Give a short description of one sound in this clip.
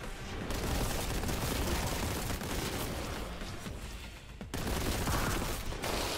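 Gunshots fire rapidly in a video game.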